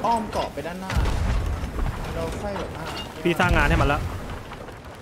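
Heavy explosions boom close by.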